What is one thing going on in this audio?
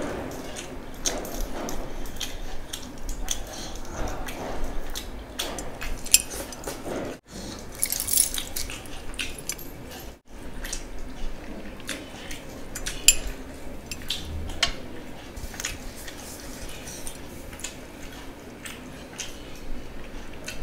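Fingers squelch and mix wet food on a plate.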